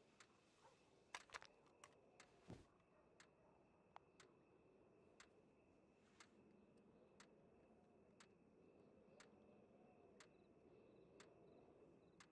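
Horse hooves clop on a wooden floor.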